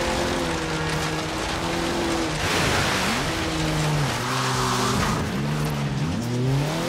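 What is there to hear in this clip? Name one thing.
A car engine revs hard, its pitch rising and dropping through gear changes.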